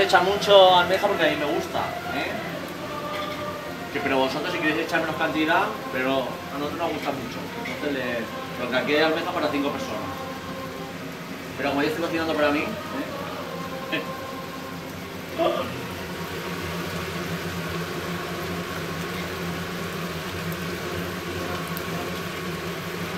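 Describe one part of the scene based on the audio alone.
A pan of rice sizzles steadily on a stove.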